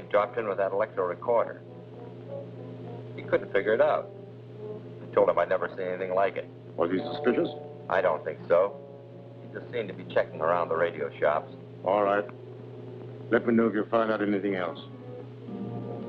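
A man speaks calmly into a telephone.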